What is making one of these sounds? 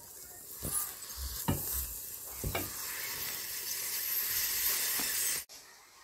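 A spatula scrapes and taps against a metal pot of thick porridge.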